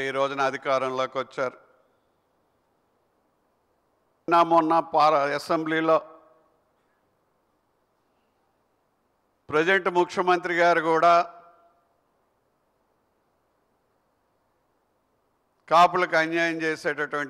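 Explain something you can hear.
A middle-aged man speaks into a microphone in measured phrases with long pauses.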